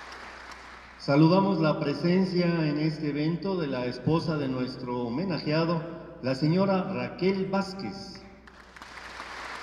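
A man speaks through a microphone and loudspeakers in a large echoing hall.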